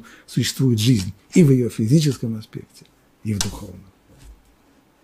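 An elderly man speaks with animation into a close microphone.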